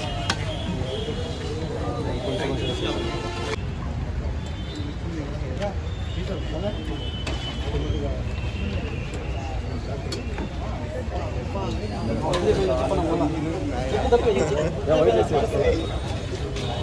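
A crowd of people chatter outdoors around the listener.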